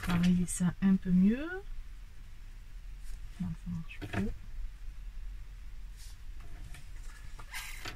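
A pen scratches lightly on card.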